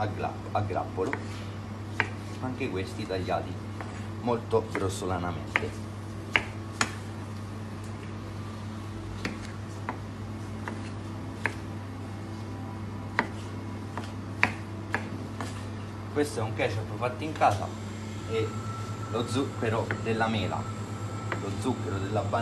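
A knife chops sharply against a cutting board.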